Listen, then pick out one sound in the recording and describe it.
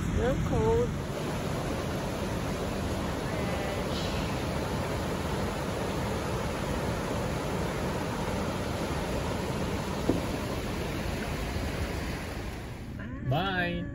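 A river rushes steadily over rapids.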